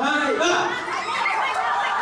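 A young girl laughs.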